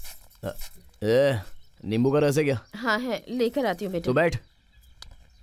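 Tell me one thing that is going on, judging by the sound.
A man speaks nearby in a raised voice.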